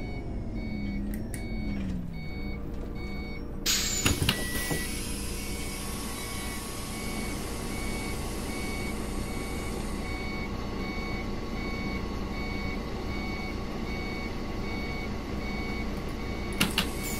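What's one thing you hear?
A bus engine hums steadily and slows down.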